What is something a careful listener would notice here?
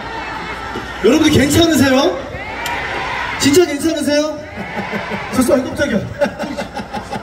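A man sings loudly into a microphone over a loudspeaker.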